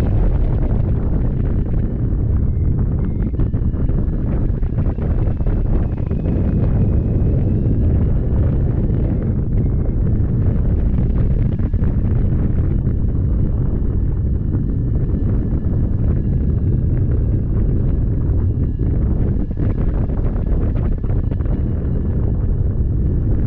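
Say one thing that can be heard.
Wind rushes loudly and steadily past the microphone.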